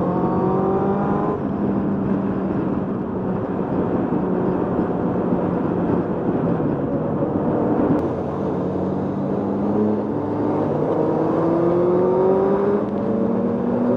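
A motorcycle engine drones steadily, its pitch climbing as it speeds up and dropping at each gear change.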